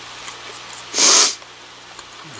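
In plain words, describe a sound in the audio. A woman blows out a short, sharp puff of breath.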